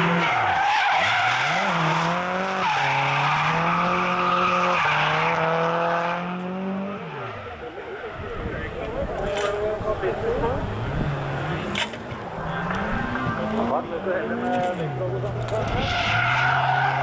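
Tyres screech on tarmac as a car slides sideways.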